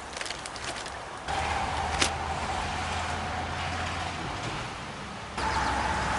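Dry twigs snap and rustle under a man's hands.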